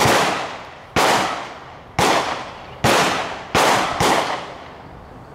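Loud rifle shots crack one after another, each echoing away outdoors.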